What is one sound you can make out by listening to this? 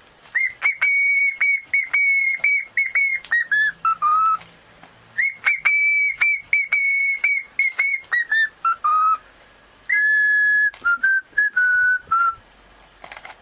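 A cockatiel whistles a loud, clear tune in bursts, close by.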